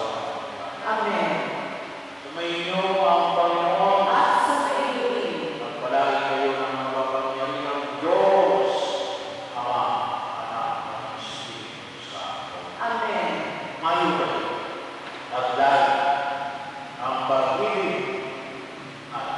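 A man chants slowly through a loudspeaker in a large echoing hall.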